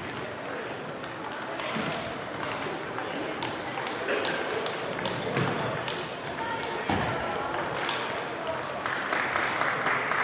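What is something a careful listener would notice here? Ping-pong balls click on tables throughout a large echoing hall.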